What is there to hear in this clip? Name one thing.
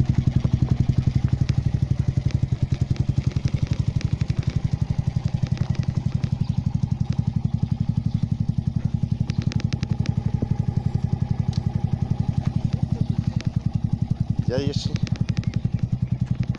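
A single-cylinder four-stroke motorcycle idles with an even, thumping beat.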